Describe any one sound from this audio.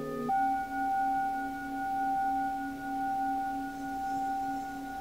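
Metal singing bowls ring with long, steady, humming tones.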